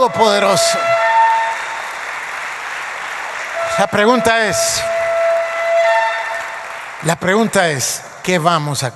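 A middle-aged man speaks with animation through a microphone, echoing in a large hall.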